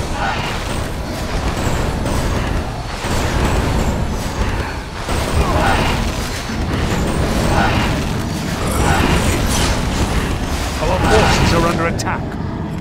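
Magic blasts crackle and whoosh in a fierce battle.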